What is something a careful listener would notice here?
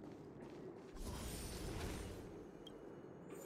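A shimmering magical whoosh swells and fades.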